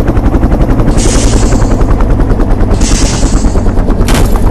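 An explosion bursts with a rushing hiss.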